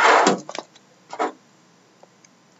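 A knife slits through plastic wrap.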